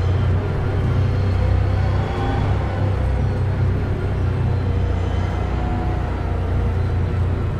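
A race car engine rumbles steadily at low speed, heard from inside the cockpit.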